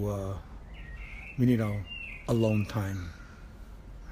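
A middle-aged man speaks with animation close to the microphone.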